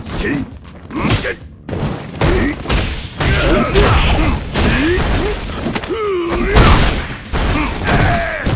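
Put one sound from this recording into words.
Punches and kicks land with sharp thuds and smacks.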